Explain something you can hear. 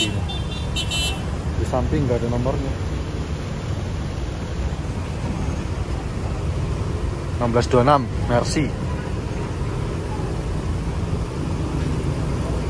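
Motorbike engines idle and rev in traffic.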